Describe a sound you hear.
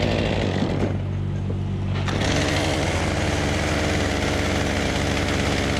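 A small saw engine drones loudly nearby, then revs higher.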